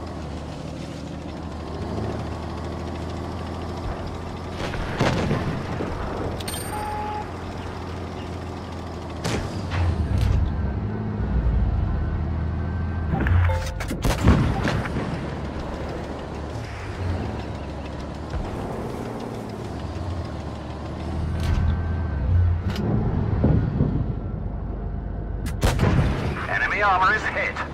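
A tank engine rumbles low and steadily.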